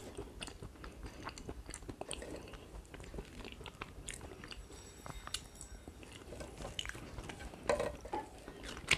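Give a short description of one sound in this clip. A metal spoon scrapes and clinks on a plate close to a microphone.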